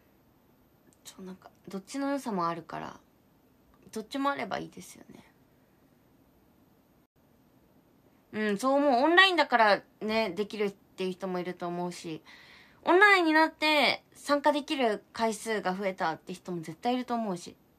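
A young woman talks calmly and close by, with pauses.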